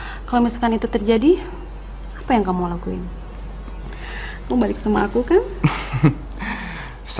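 A young woman sings softly and closely.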